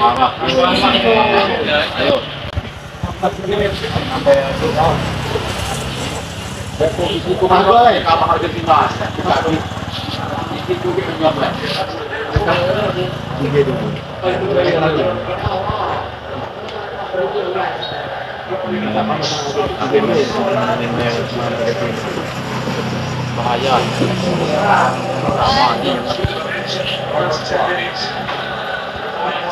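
Several young men talk and call out nearby.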